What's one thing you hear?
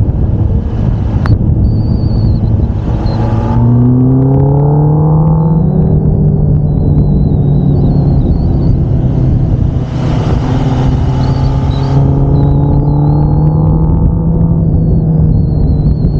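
A motorcycle engine roars steadily at speed, its pitch rising as it accelerates.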